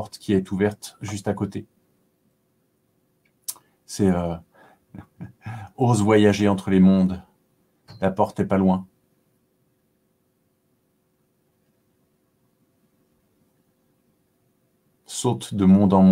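A man speaks calmly into a nearby microphone, with pauses.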